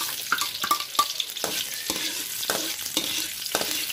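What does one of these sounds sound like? A metal spoon scrapes and taps against a pan.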